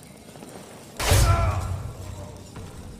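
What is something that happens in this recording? A blade strikes a body with a heavy thud.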